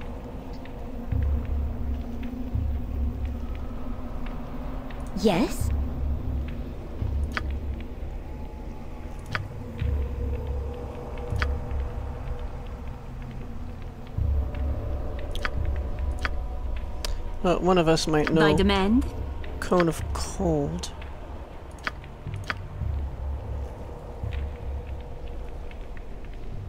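A magic spell crackles and shimmers steadily.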